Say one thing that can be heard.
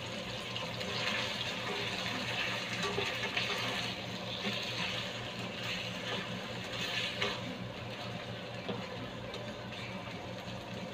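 Chicken sizzles in a hot pan.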